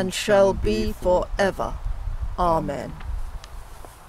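An elderly woman speaks calmly, close to the microphone.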